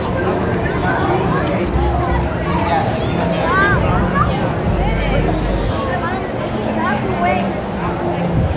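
Young children shout and squeal excitedly nearby.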